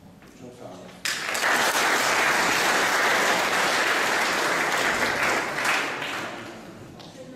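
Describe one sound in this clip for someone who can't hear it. A crowd applauds loudly.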